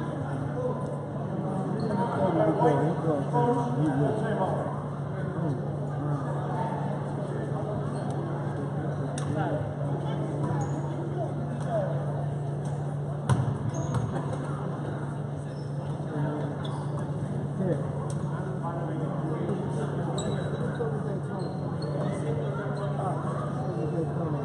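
Spectators talk and call out in a large echoing gym.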